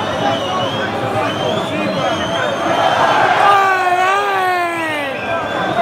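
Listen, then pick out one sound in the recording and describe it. A large stadium crowd chants and sings loudly outdoors.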